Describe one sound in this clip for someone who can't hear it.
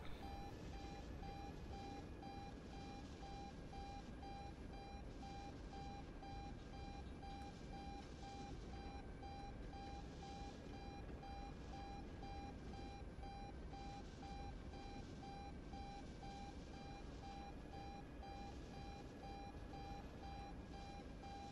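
A helicopter's engine whines steadily.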